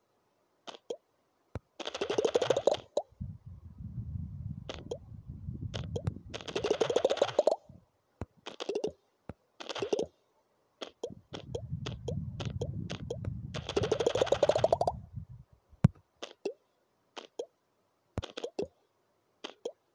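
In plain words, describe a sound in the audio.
A ball taps rapidly as it bounces and smashes through stacked tiles.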